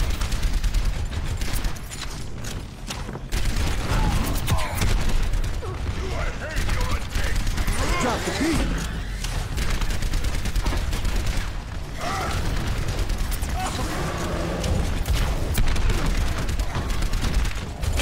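Rapid bursts of rifle fire crack.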